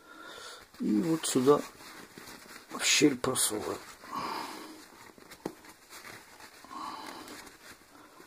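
Soft felt rustles as it is handled.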